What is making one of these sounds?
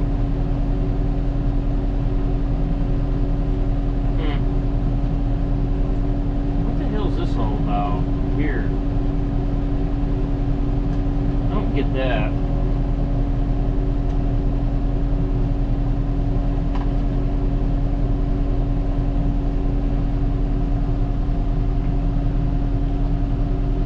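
A tractor engine hums steadily from inside its cab.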